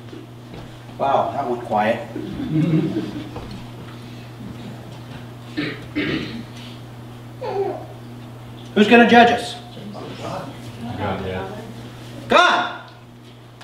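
A middle-aged man speaks calmly through a microphone in a room with some echo.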